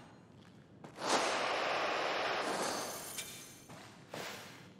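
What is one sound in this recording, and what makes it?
A cutting torch hisses loudly against metal.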